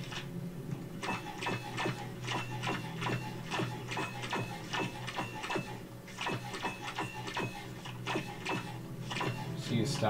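Short menu clicks tick as a selection moves from option to option.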